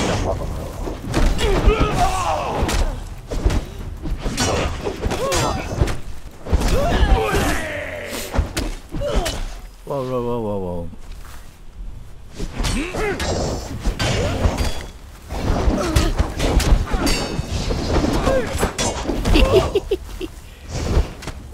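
Weapons clash and thud in a close fight.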